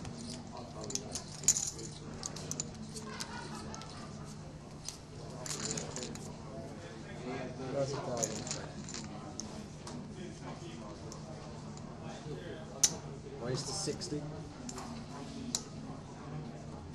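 Poker chips click and clatter as they are stacked and shuffled on a felt table.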